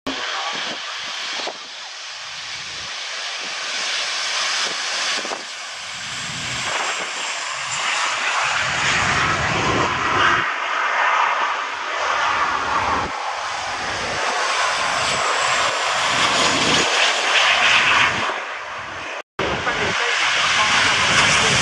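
Jet engines roar loudly.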